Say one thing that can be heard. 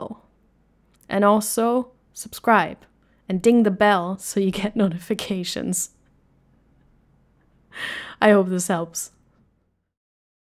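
A young woman speaks warmly and close into a microphone.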